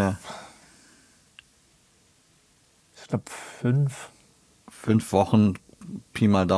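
A man talks calmly and close up, in short bursts with pauses.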